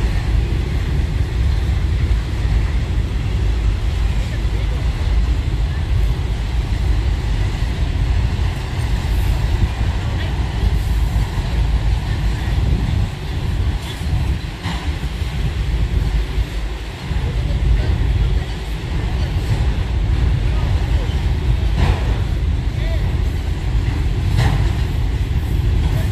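A long freight train rumbles steadily past in the distance.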